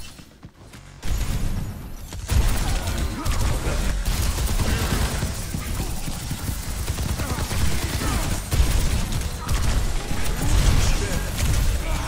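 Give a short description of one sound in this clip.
Gunfire and energy blasts from a video game crackle and boom.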